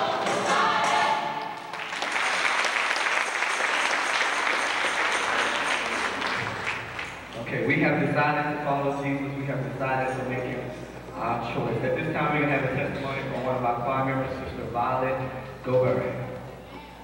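A large choir of young voices sings together in an echoing hall.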